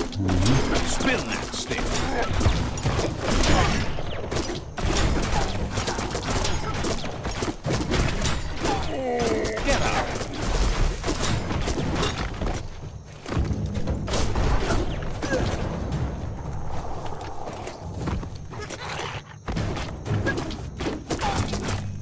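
Blows thud and clash in a fight.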